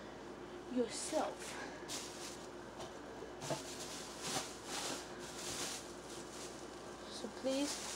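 A boy speaks close by in short bursts.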